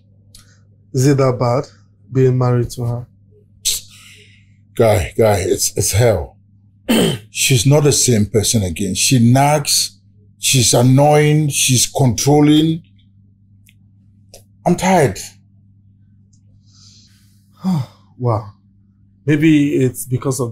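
Two men talk calmly, close by, in turns.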